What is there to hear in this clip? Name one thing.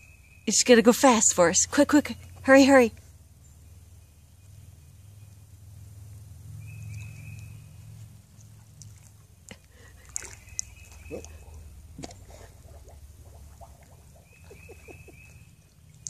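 A dog splashes and laps at shallow water.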